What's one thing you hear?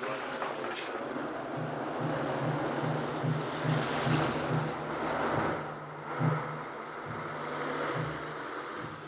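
A car engine hums and throbs.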